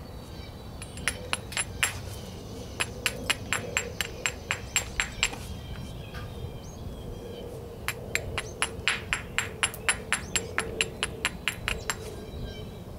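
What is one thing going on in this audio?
A hammerstone taps rapidly against the edge of a flint with sharp, light clicks.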